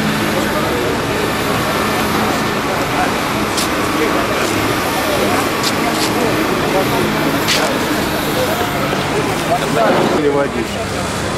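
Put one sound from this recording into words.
A man speaks calmly among a small crowd outdoors.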